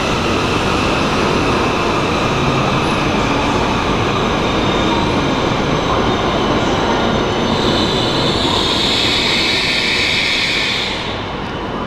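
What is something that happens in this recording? Wheels rumble steadily on the rails.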